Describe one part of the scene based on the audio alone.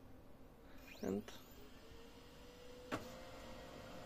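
A printer's mechanism clunks.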